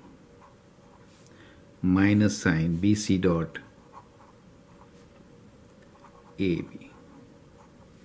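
A marker squeaks faintly across a sheet of paper.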